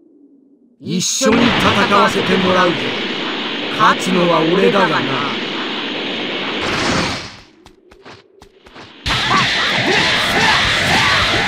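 A roaring rush of energy surges loudly.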